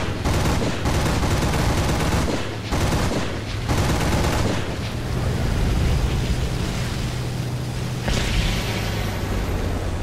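A propeller plane's engine roars steadily up close.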